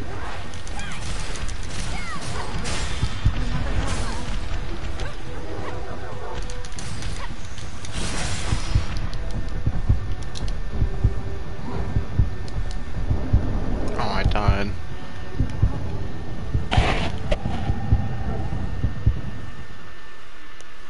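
Heavy blows and blasts crash and rumble in a fight.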